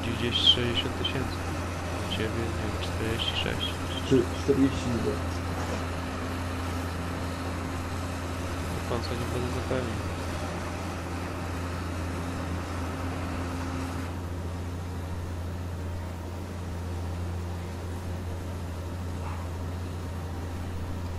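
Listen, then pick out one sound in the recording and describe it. A large harvester engine drones steadily.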